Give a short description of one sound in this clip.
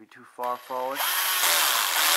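A cordless drill whirs loudly.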